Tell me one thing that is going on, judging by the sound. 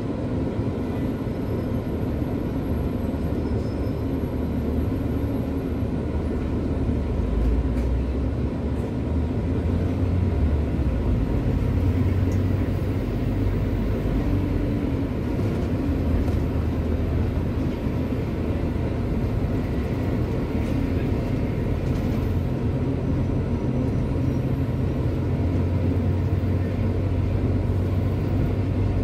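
An engine rumbles steadily while driving along a city street.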